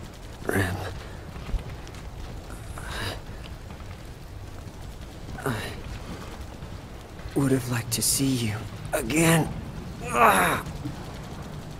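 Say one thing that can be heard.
A young woman speaks softly and weakly, close by.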